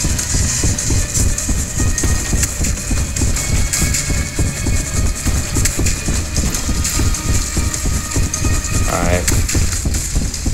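A mine cart rumbles and clatters steadily along rails.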